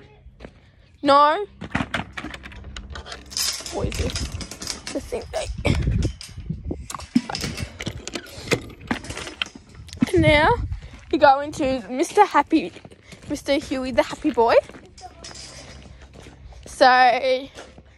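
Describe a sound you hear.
A young girl sings in short loud bursts.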